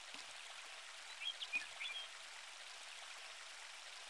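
A fishing line whips out in a cast.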